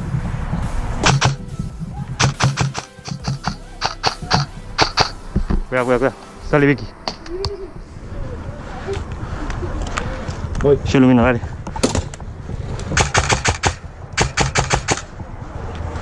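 A gun fires rapid bursts of shots nearby.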